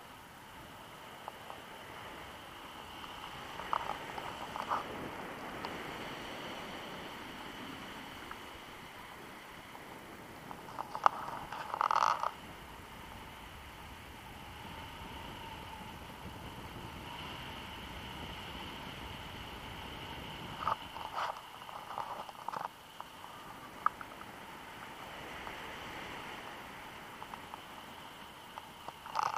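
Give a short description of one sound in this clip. Wind rushes steadily past high in the open air.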